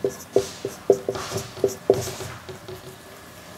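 A marker squeaks and taps across a whiteboard.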